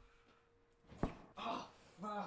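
A bed thumps and creaks as a young man drops onto it.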